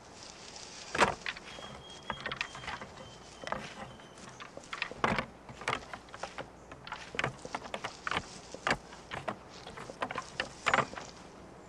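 Deer antlers clack and rattle together as two bucks spar.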